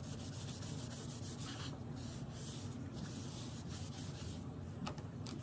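A cotton pad rubs briskly against a smooth plate.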